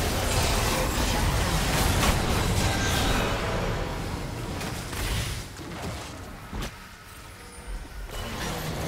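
Game characters clash with sharp hits.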